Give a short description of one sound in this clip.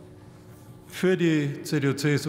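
A woman begins speaking into a microphone.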